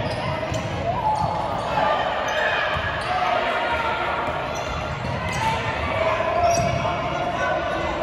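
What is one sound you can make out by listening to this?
A basketball bounces on a hard floor with an echo.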